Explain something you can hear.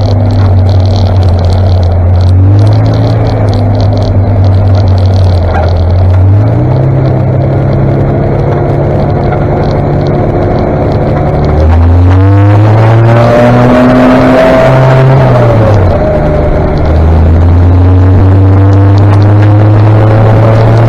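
A motorcycle engine drones close by, its pitch rising and dropping with gear changes.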